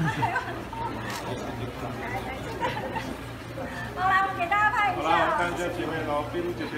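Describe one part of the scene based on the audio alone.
Young women talk and laugh with animation close by.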